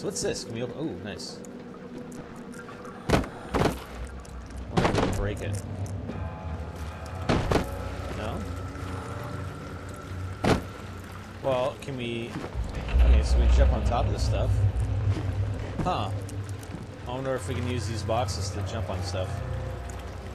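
A young man talks animatedly into a close microphone.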